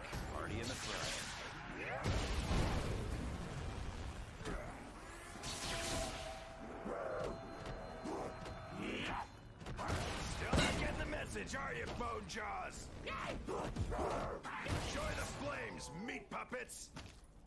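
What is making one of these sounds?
Monsters growl and snarl nearby.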